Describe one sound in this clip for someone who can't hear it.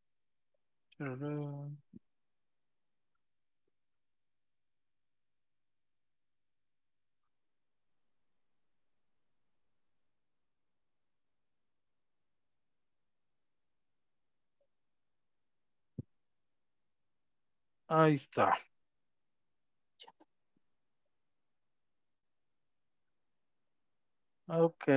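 A man speaks briefly over an online call, with long silences between.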